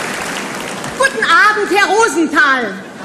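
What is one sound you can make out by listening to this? A woman speaks cheerfully close by.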